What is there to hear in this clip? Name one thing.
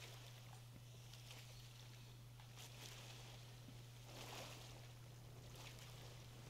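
Water sloshes and splashes gently.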